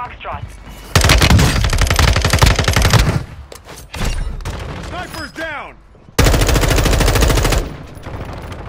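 A gun fires rapid bursts.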